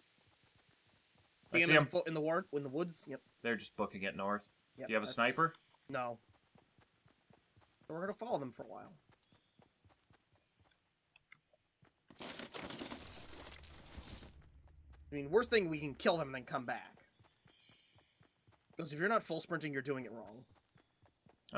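Footsteps patter quickly on soft ground.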